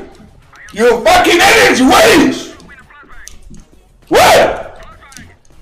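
A young man shouts excitedly into a microphone, close by.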